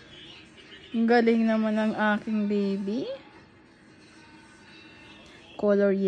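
A woman speaks gently nearby.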